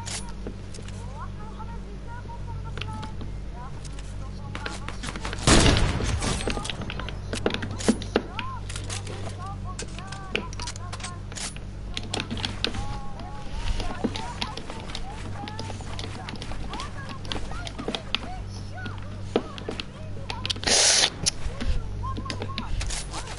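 Building pieces snap into place with quick clattering thuds.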